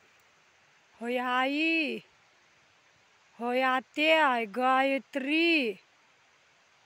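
A man shouts long, drawn-out calls outdoors.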